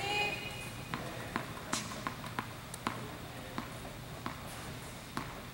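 A tennis ball bounces again and again on a hard court in an echoing indoor hall.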